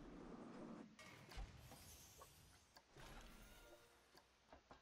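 Construction pieces snap into place with short crunching bursts.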